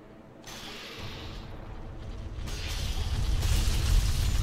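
A large beast growls and roars close by.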